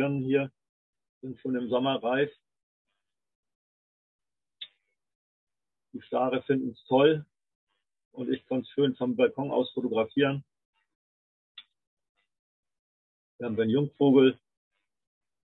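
An elderly man speaks calmly into a microphone over an online call, with pauses.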